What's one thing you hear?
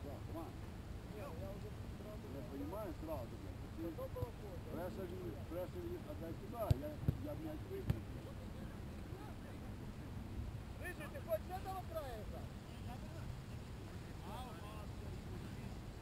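Men shout and call out to each other in the distance outdoors.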